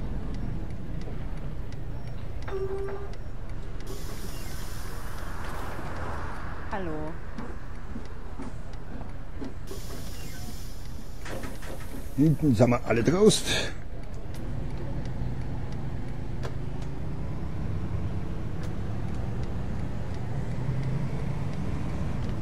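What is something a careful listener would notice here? A diesel city bus engine hums while driving along.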